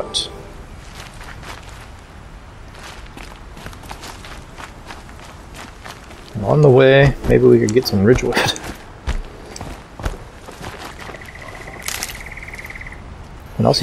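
Footsteps rustle through leafy undergrowth.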